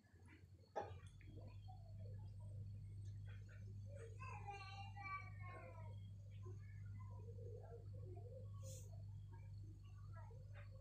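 An electric fan hums steadily.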